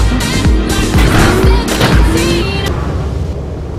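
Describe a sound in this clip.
A car crashes to the ground with loud thuds.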